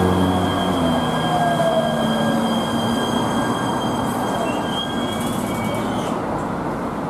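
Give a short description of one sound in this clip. A train's motors whine and hum as it brakes.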